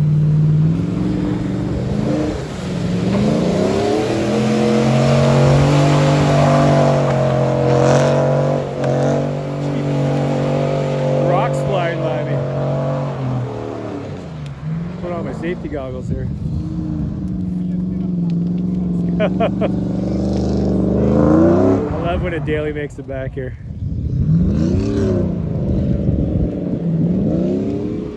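A truck engine roars and revs up and down loudly.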